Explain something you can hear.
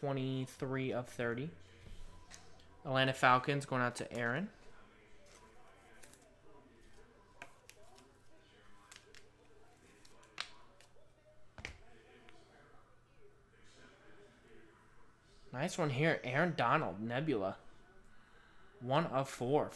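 Trading cards are shuffled and handled.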